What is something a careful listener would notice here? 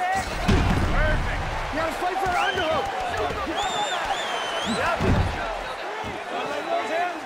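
Spectators whistle shrilly.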